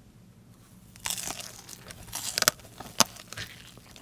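A young woman bites into crispy fried chicken with a loud crunch.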